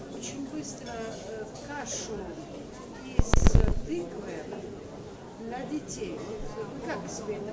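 A middle-aged woman speaks calmly into a handheld microphone, heard close through a loudspeaker.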